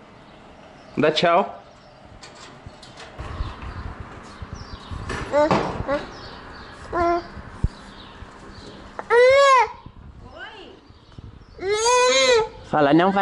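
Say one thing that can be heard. A toddler calls out in long, drawn-out sing-song cries close by.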